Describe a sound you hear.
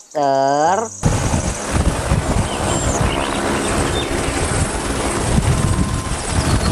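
A helicopter's rotor thumps and its engine whines nearby.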